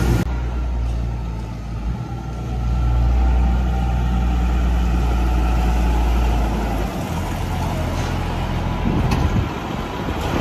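A tractor engine rumbles steadily, growing louder as it drives close by.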